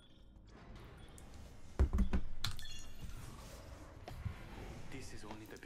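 A young man speaks casually into a nearby microphone.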